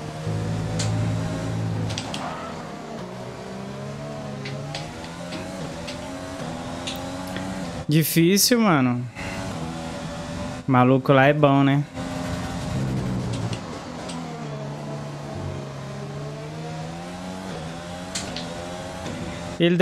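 A racing car engine roars and changes pitch as it speeds up and slows down.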